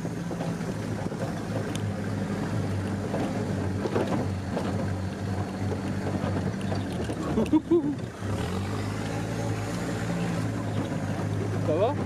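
An engine rumbles steadily.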